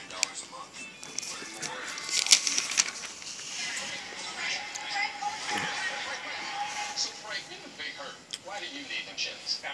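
Paper pages rustle and crinkle as they are handled.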